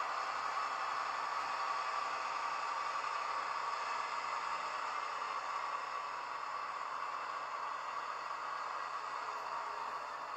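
A model train hums and clatters steadily along its track.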